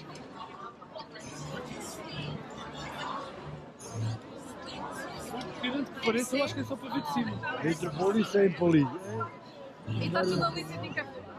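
A crowd chatters outdoors with many voices overlapping.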